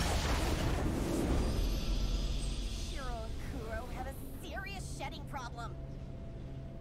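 A triumphant victory fanfare plays loudly and then fades.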